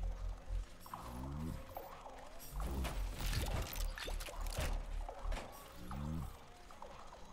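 Wooden drawers slide open and bang.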